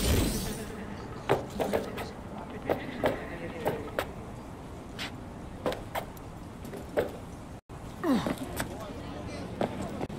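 Footsteps clang on a metal roof.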